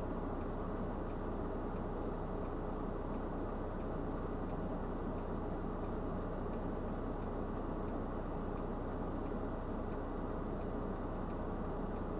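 A truck engine idles with a steady low rumble close by.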